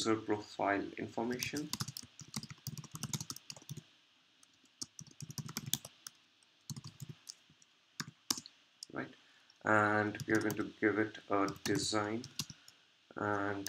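Keyboard keys click in quick bursts of typing.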